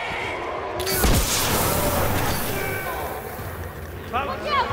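An explosion booms, followed by roaring flames.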